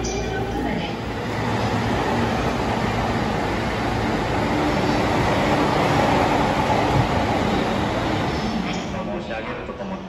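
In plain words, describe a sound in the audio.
A train rumbles along a platform in a large echoing station.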